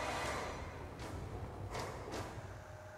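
Heavy thuds and whooshes sound as a large creature lands on a tower.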